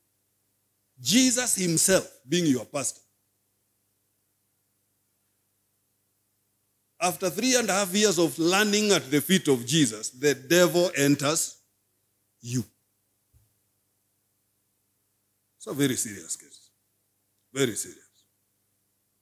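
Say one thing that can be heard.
A man speaks with animation into a microphone, in bursts with long pauses.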